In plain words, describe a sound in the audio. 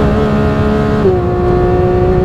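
A race car engine shifts up a gear with a sudden drop in pitch.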